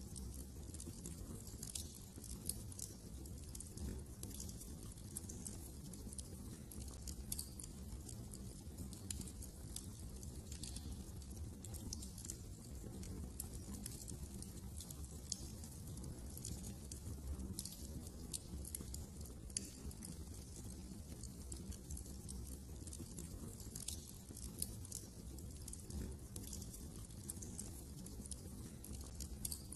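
A wood fire crackles and pops steadily close by.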